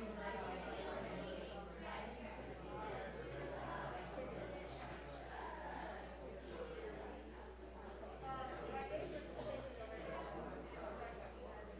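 A person speaks calmly in a large, echoing hall.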